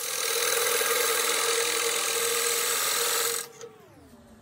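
A wood lathe gouge scrapes loudly against spinning wood.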